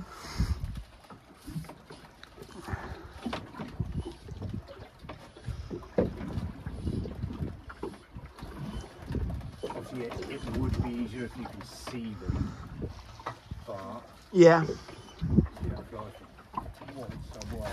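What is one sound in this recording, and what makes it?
Wind gusts over open water.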